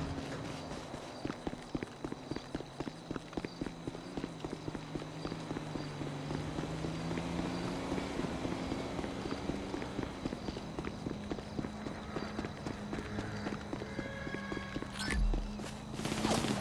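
Footsteps run on a dirt road.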